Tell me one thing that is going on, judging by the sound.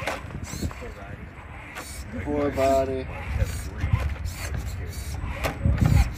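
A small electric motor whirs as a toy truck climbs over rough ground.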